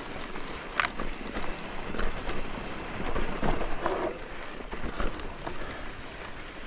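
Bike tyres roll and crunch over a dirt and rock trail.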